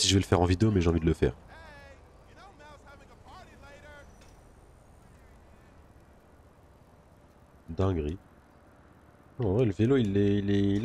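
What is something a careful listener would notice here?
Bicycle tyres hum softly on a paved road.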